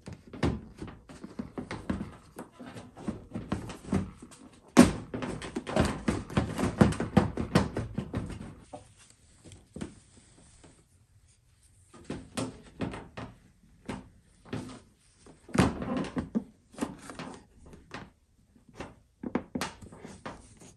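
Hard plastic parts click and knock.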